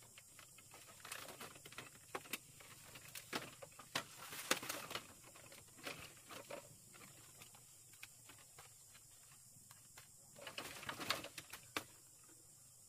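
Bamboo slats creak and knock as someone shifts and lies down on them.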